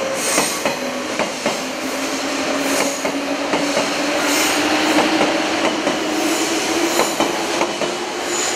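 A train rolls slowly along the track with a steady hum.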